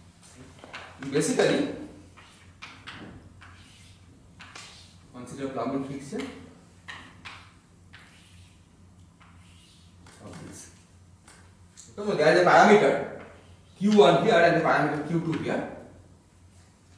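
A man speaks calmly, in short bursts, in a slightly echoing room.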